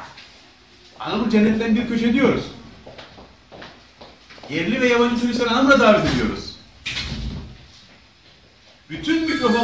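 A middle-aged man speaks with animation close by, in bursts with pauses.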